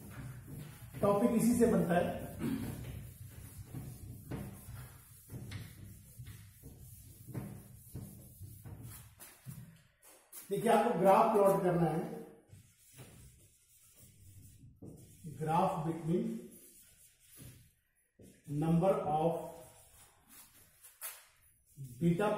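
An elderly man speaks calmly, explaining.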